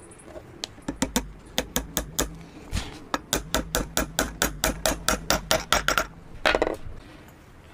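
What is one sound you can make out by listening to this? A hammer taps a wooden dowel into a hole with quick, repeated knocks.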